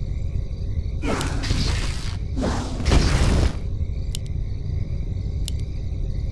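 Fiery magic blasts burst with a rushing whoosh.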